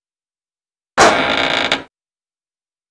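A heavy metal door slides open with a short grinding rush.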